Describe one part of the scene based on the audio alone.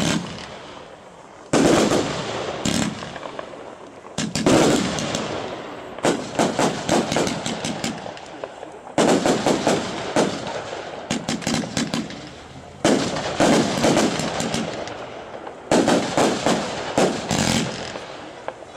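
Fireworks burst with loud booms and crackles outdoors.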